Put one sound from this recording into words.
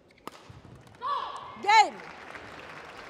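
A young woman shouts loudly in triumph.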